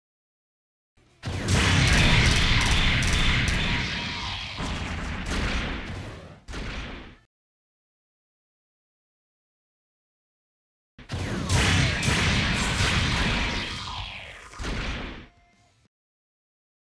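Thrusters roar as a robot game character dashes.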